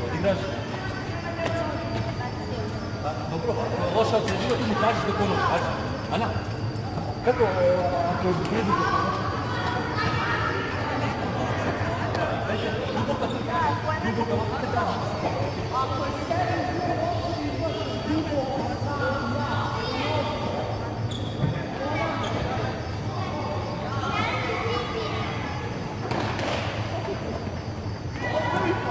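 A tennis ball is struck with a racket with a sharp pop.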